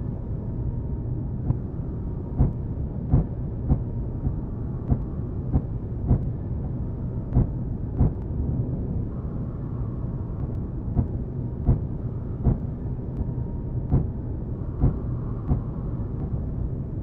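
A spaceship engine rumbles low and steady.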